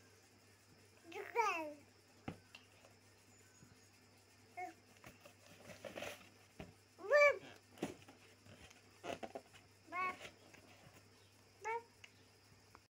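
A baby squeals and coos in short bursts close by.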